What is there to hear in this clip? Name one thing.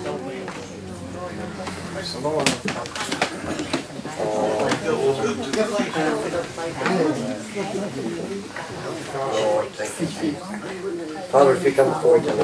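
Several adults chatter and talk among themselves nearby.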